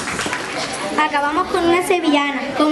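A young girl reads aloud nearby.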